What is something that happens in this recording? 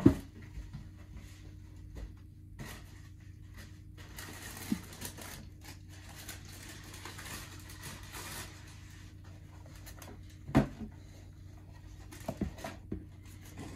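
Tissue paper crinkles and rustles as it is handled.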